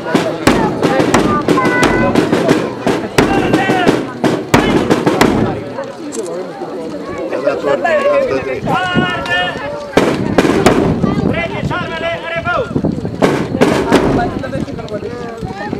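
Men talk and call out nearby outdoors.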